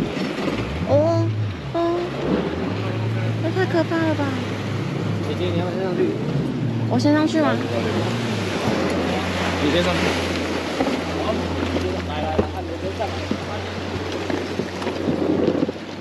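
A boat engine hums steadily nearby.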